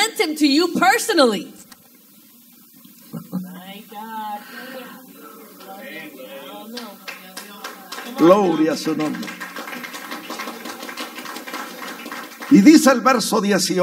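A man preaches with animation through a loudspeaker in an echoing room.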